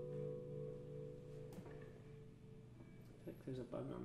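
An acoustic guitar chord rings out and slowly fades.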